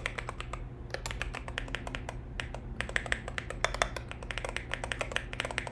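A keyboard clatters with quick typing close by.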